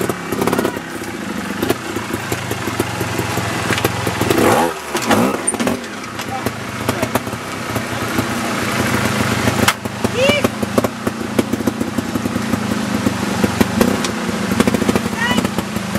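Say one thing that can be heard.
Motorcycle tyres scrape and thud against rock.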